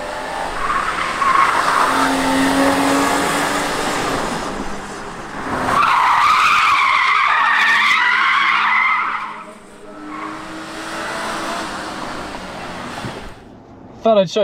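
A car engine revs hard.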